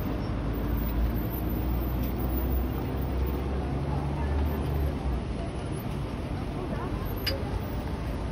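A car engine rumbles as the car rolls slowly past.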